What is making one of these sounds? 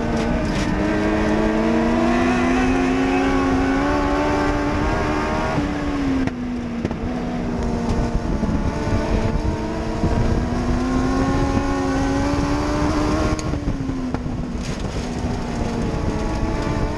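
A race car engine roars loudly up close, rising and falling in pitch.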